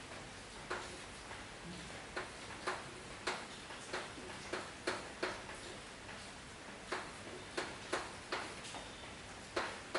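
Chalk taps and scrapes on a blackboard in short sharp strokes.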